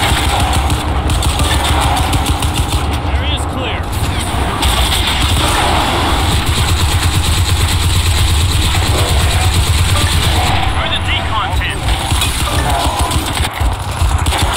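Rapid gunfire rattles and booms throughout.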